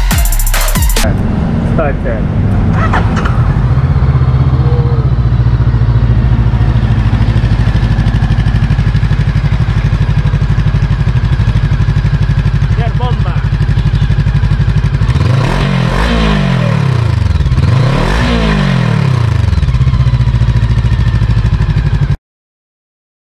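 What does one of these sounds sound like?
A motorcycle engine idles with a steady, throbbing rumble.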